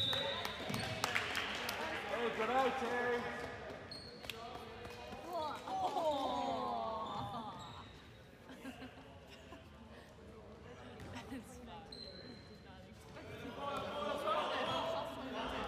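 Young men shout across a large echoing gym.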